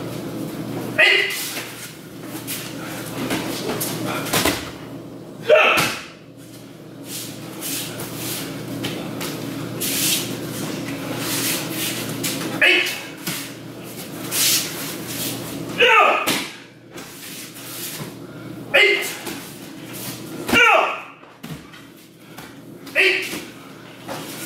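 A man shouts sharply and loudly in a room with some echo.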